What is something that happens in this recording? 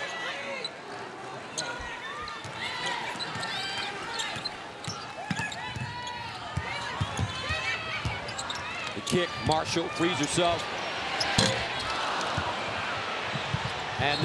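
A large indoor crowd murmurs and cheers, swelling loudly near the end.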